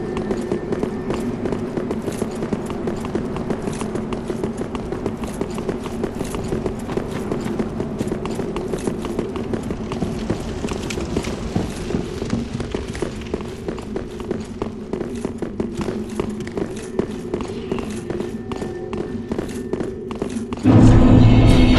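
Armoured footsteps clatter quickly on stone.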